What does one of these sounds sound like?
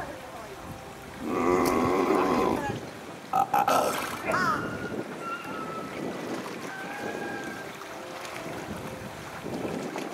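Water laps and splashes as seals swim.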